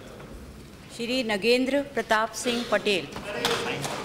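An elderly woman speaks into a microphone.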